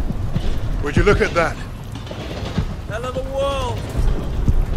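A man shouts over the wind.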